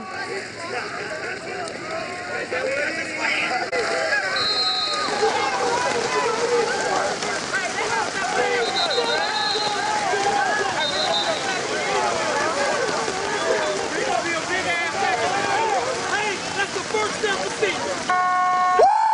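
Many voices shout and cheer across an open field.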